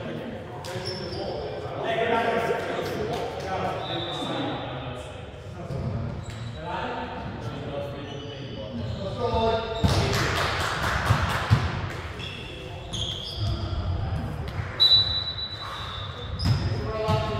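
Shoes squeak sharply on a gym floor.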